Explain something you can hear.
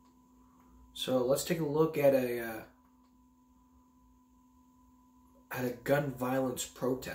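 A young man speaks close by, calmly and in short bursts.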